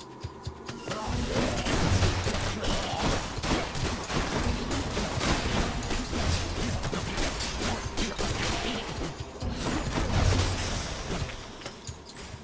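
Game combat effects whoosh and crash loudly.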